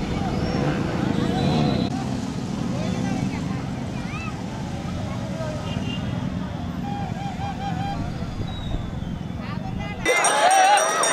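Motorbike engines rumble past outdoors.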